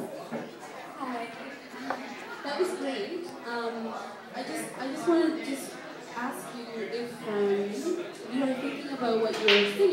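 A crowd of people chatters nearby in a room.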